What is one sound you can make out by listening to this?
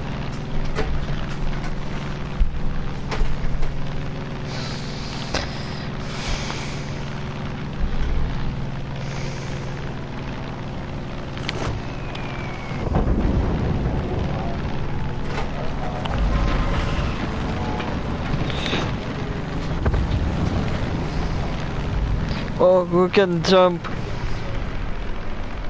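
A light propeller plane's engine drones in flight.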